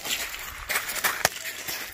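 A ball thuds on the ground.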